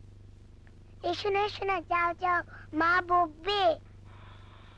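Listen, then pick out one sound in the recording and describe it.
A young girl calls out in a high, sing-song voice.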